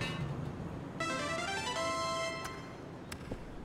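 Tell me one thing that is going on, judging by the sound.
A bright chiming jingle plays in celebration.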